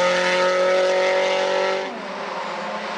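A rally car engine roars at high revs and drops away past a bend.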